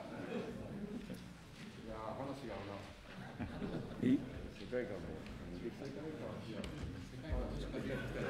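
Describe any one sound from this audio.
A man speaks steadily into a microphone.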